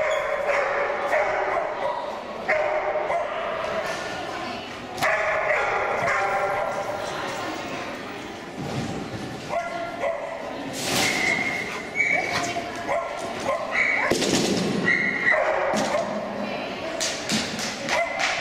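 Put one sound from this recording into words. A young woman calls out commands to a dog.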